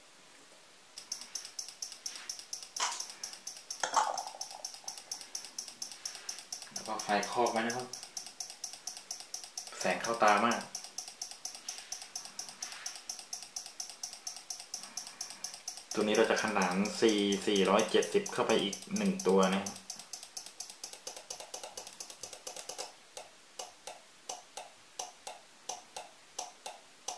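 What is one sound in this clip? A small relay clicks on and off.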